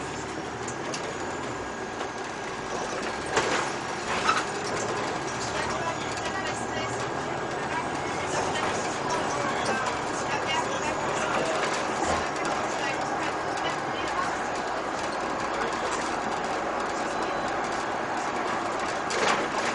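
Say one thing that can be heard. Tyres hum on asphalt.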